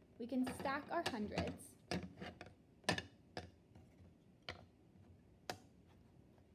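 Plastic blocks clack together as they are stacked on a table.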